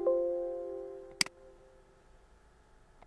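A computer warning chime rings out and fades.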